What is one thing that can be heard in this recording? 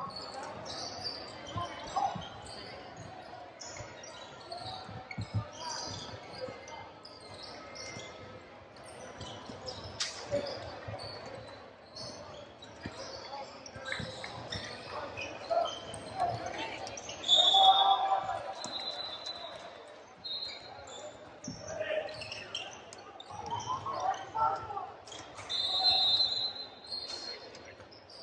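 A basketball bounces and thuds on the floor.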